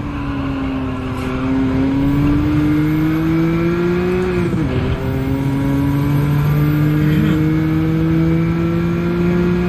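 A racing car engine revs loudly and climbs in pitch.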